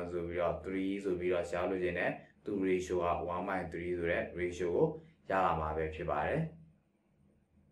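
A young man speaks calmly and steadily into a close microphone.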